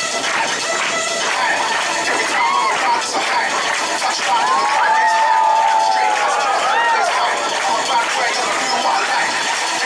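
A crowd cheers and whistles close by.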